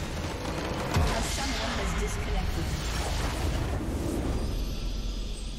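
A large crystal structure shatters with a loud, rumbling explosion.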